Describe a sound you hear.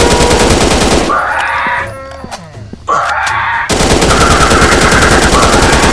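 A dinosaur roars loudly.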